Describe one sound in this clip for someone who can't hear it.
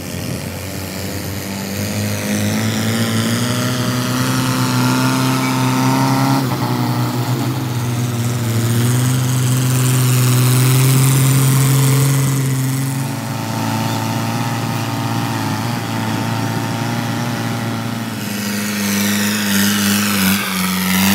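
A tractor engine roars and labours.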